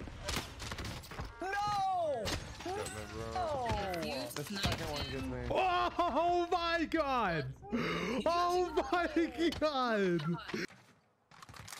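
A young man shouts with excitement into a close microphone.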